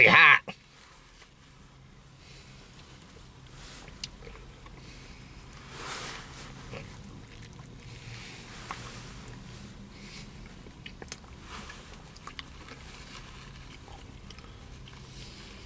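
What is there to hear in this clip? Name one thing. Paper food wrapping rustles in a man's hands.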